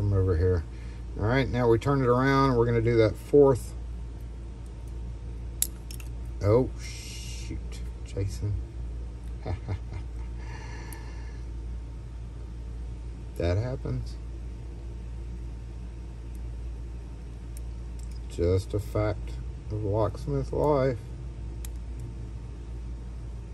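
Metal tweezers click and scrape faintly against small metal lock parts.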